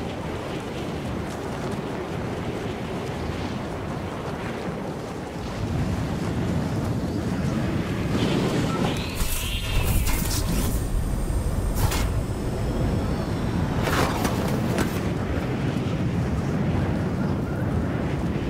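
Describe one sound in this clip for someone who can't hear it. Wind rushes loudly past a falling skydiver.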